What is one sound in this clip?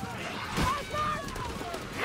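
A woman shouts out.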